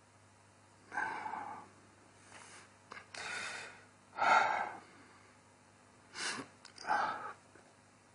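A middle-aged man sniffs and sighs, choked with emotion.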